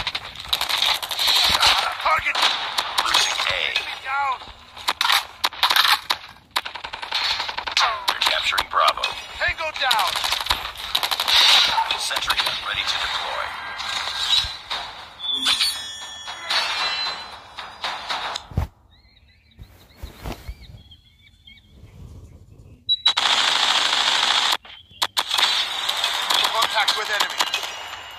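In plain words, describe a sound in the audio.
Rapid gunfire rattles in short bursts.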